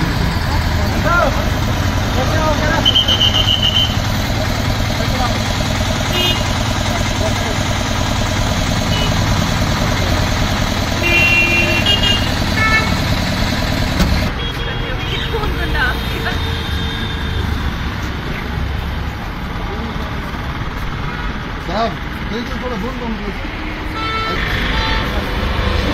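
Traffic rumbles steadily along a street outdoors.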